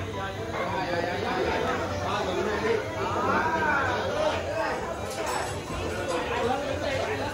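A group of adult men and women chatter and call out over each other nearby.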